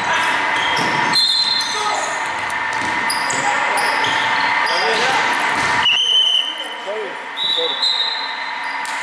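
Basketball shoes squeak on a wooden court in a large echoing hall.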